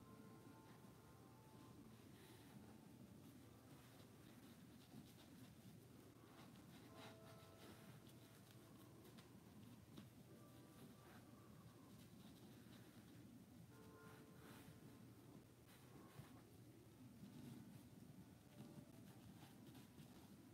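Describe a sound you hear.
Paper rustles and taps softly as pieces are handled.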